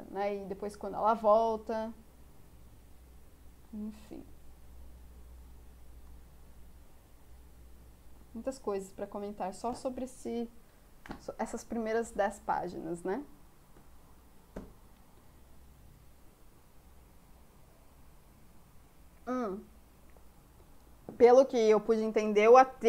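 A young woman speaks with animation into a close microphone, in short bursts with pauses.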